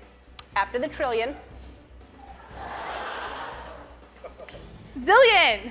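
A young woman exclaims loudly in a high, excited voice.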